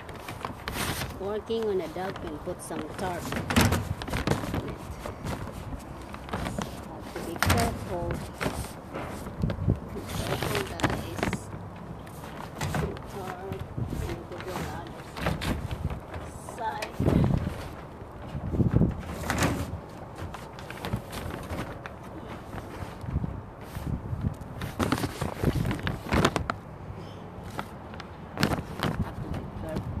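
Plastic sheeting crinkles and rustles under hands and knees.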